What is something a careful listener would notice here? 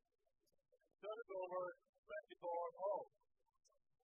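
A young player shouts out briefly.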